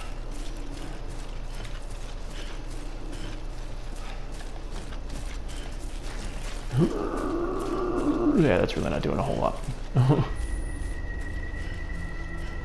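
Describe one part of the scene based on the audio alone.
Footsteps tread steadily through grass.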